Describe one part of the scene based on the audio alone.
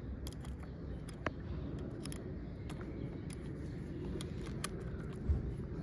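A metal wrench clicks against a bolt.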